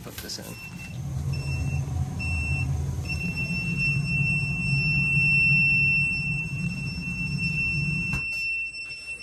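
A furnace burner rumbles with a low, steady roar.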